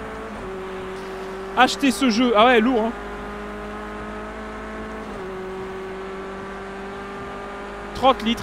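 A race car engine drones steadily and shifts gears.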